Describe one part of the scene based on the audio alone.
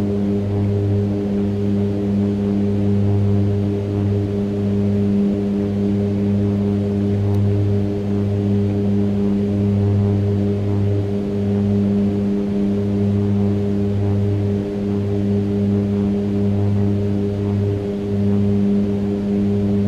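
Aircraft engines drone steadily with a low hum.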